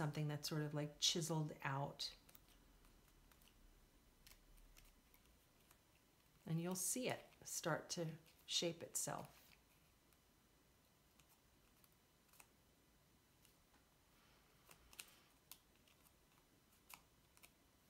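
Paper rustles and crinkles softly.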